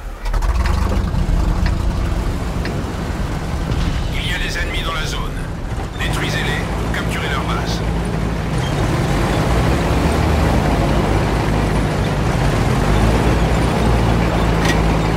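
A heavy tank engine rumbles and grinds steadily.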